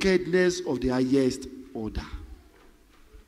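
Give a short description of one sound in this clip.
A man speaks loudly and with animation into a microphone over loudspeakers in an echoing hall.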